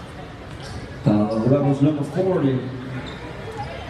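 A man in the crowd shouts loudly nearby.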